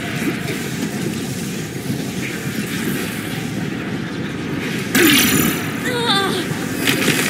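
Electricity crackles and zaps in sharp bursts.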